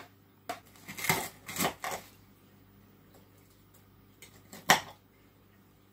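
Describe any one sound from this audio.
A knife and fork scrape on a plate.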